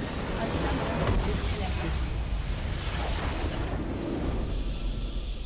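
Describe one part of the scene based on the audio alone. A structure explodes with a loud crash.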